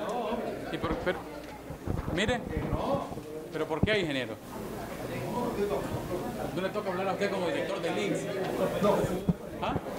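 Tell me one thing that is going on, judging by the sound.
Several men argue loudly in an echoing hall.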